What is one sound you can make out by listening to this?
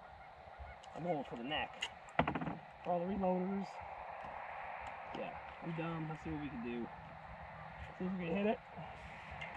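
An older man talks calmly nearby.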